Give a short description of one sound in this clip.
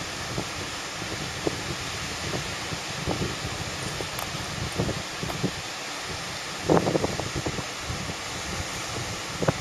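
Waves break and wash steadily onto a beach, heard outdoors.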